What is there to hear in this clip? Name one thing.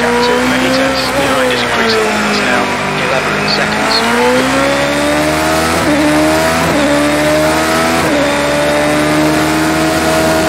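A racing car engine whines high, dropping in pitch through a corner and then climbing through the gears.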